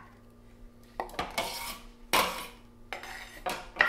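A knife scrapes food pieces off a wooden board into a bowl.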